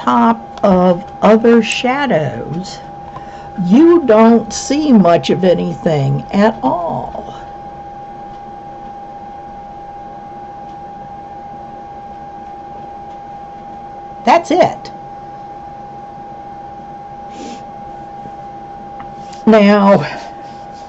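A middle-aged woman talks calmly and close to a microphone, with long pauses.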